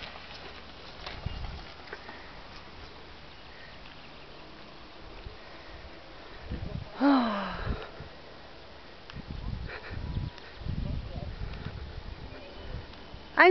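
Wind buffets the microphone in gusts outdoors.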